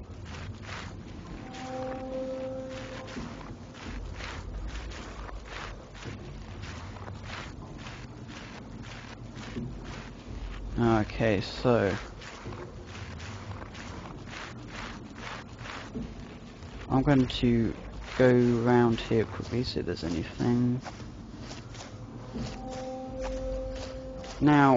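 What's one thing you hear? Footsteps walk steadily on hard ground.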